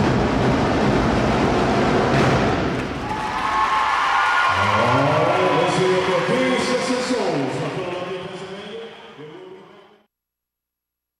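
A marching drum line pounds bass drums in a loud echoing hall.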